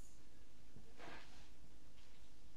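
Clothes rustle briefly as a child handles them.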